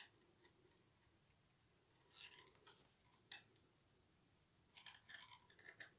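Knitting needles click and scrape softly against each other.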